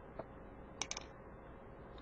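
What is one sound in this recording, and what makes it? Plastic toy bricks click softly under a hand.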